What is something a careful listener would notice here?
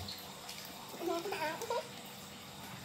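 A young girl giggles.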